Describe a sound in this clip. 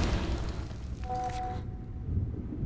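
A short chime sounds.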